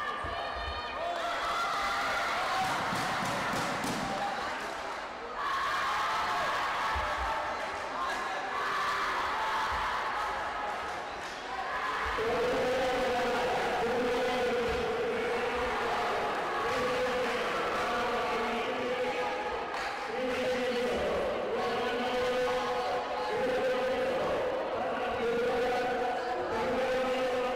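Spectators cheer and shout in a large echoing hall.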